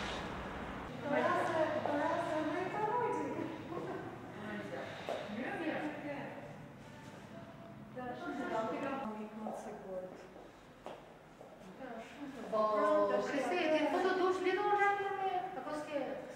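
A woman speaks calmly and closely through a clip-on microphone.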